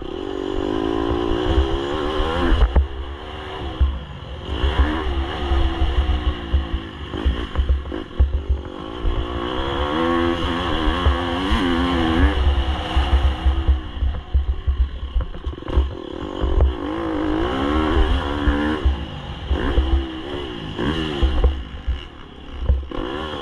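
Tyres crunch and rattle over loose gravel.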